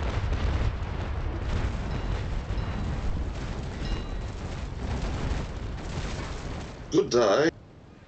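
Cannons boom and rumble.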